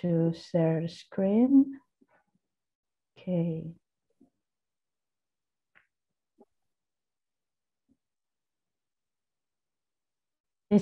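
A young woman speaks calmly into a microphone over an online call.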